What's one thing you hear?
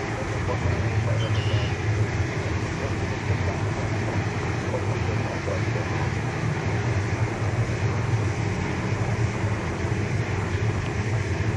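A jet airliner's engines roar steadily as the plane approaches.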